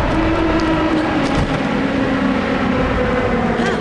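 Wind rushes past during a glide through the air.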